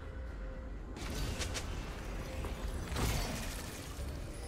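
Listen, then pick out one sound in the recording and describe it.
Magic spell effects whoosh and crackle in quick bursts.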